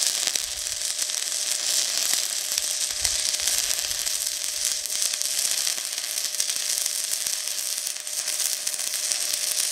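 A welding arc crackles and sizzles steadily up close.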